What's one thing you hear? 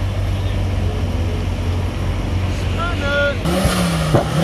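A tuned car engine idles with a deep rumble close by.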